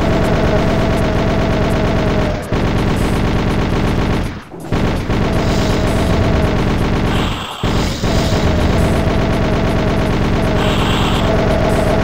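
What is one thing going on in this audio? Rockets explode with heavy booms.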